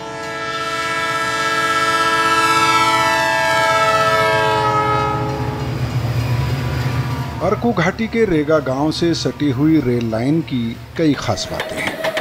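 A heavy freight train rumbles along the tracks.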